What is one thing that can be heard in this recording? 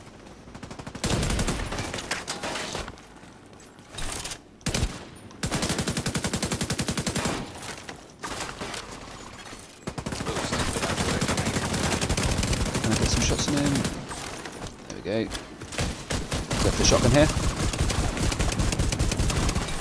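Rapid automatic gunfire rattles in short and long bursts.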